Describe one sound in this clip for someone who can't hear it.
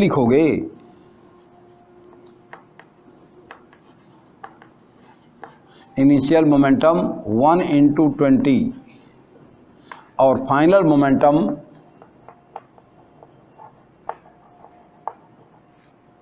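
Chalk taps and scratches on a board.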